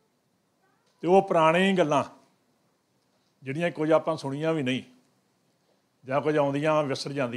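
An elderly man speaks steadily into a microphone, in bursts with pauses.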